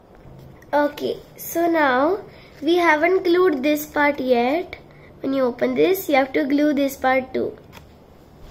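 A young girl speaks calmly and close by.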